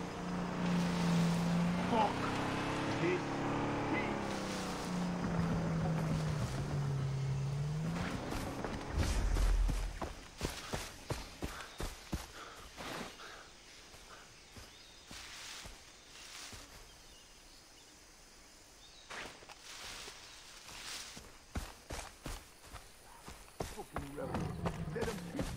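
Footsteps rustle through tall grass and leaves.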